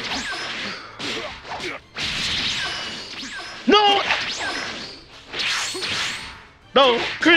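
Heavy blows thud and crack.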